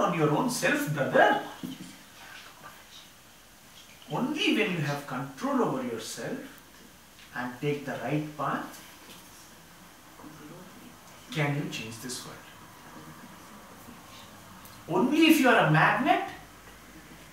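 A man speaks calmly nearby, in short bursts with pauses.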